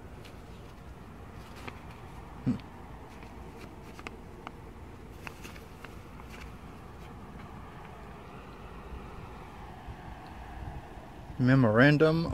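Paper rustles and crinkles as a hand handles it.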